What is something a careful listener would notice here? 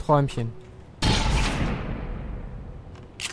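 A rifle fires a loud shot that rings out and fades.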